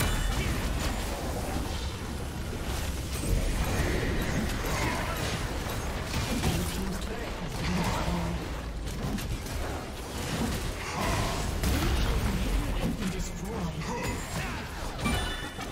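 Magic spells crackle and burst in a fast video game battle.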